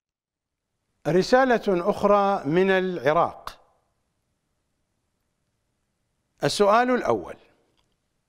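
An elderly man speaks calmly into a microphone, with a slow, measured voice.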